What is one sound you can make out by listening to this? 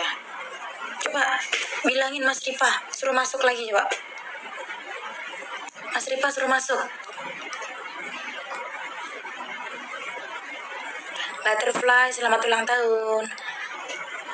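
A young woman speaks casually and close to a phone microphone, in short bursts.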